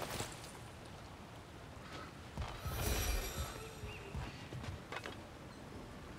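Heavy footsteps thud on wooden boards.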